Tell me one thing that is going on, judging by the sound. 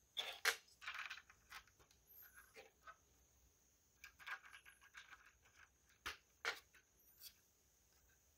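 Plastic toy bricks click and clack together as they are handled.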